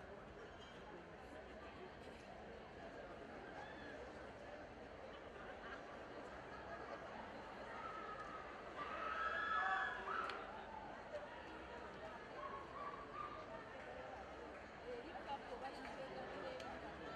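A crowd murmurs and cheers throughout.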